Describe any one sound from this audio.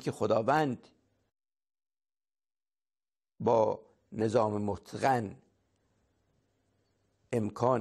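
An elderly man speaks calmly and close into a microphone, pausing between phrases.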